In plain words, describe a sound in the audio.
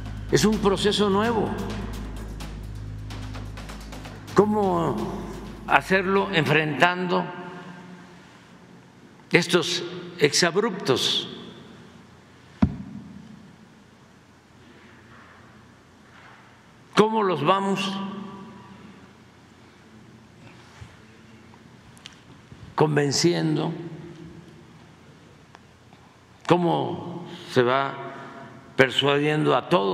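An elderly man speaks calmly into a microphone, in bursts with pauses, in a large room with a slight echo.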